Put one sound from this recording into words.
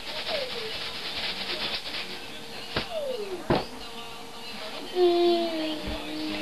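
A young girl squeals and sings playfully close by.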